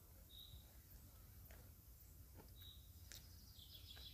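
A man chews food close by.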